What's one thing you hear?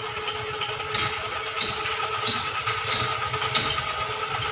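Metal tools clink against an engine block.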